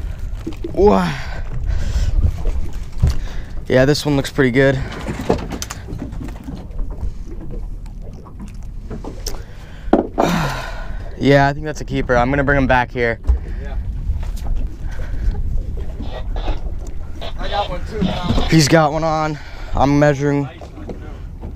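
A man talks casually nearby.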